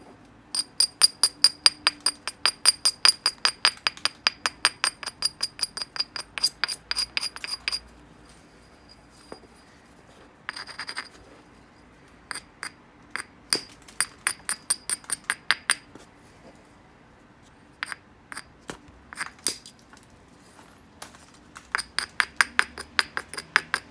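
A stone hammer taps rapidly against the edge of a piece of glassy rock with sharp, ringing clicks.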